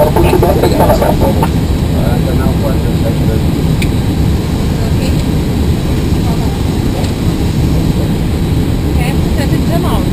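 A steady low engine hum drones throughout.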